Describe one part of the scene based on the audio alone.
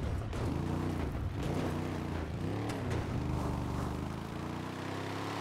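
An off-road buggy engine revs hard as it climbs a rocky slope.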